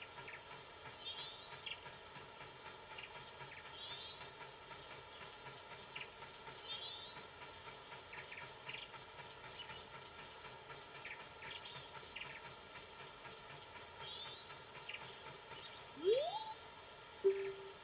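A bright sparkling chime rings out from a video game every few seconds.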